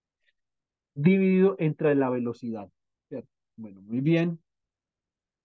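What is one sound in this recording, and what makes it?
A man speaks briefly over an online call.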